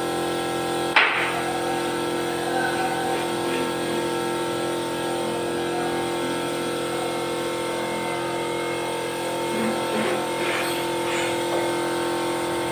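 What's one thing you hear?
A heavy wooden door bumps and scrapes as it is shifted.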